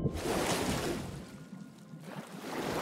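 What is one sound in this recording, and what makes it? Water laps and sloshes gently around a swimmer.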